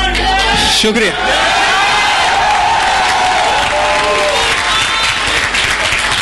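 A large audience cheers and screams loudly.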